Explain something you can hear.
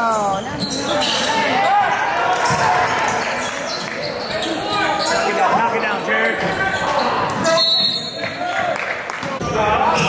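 A crowd of young spectators shouts and cheers in an echoing gym.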